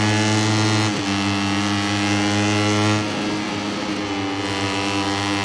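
A motorcycle engine drops in pitch briefly as it shifts gear.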